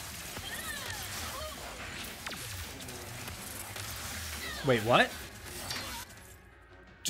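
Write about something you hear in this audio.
Energy weapons zap and crackle in a fast fight.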